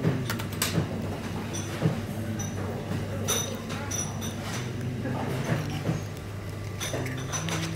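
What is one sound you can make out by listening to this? A spiny sea urchin shell cracks and crunches as it is pulled apart by hand.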